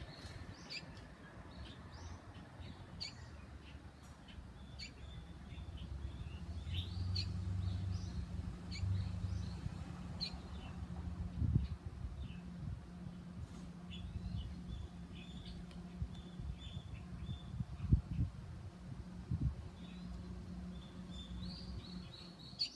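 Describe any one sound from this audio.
A small bird chirps in short, high calls.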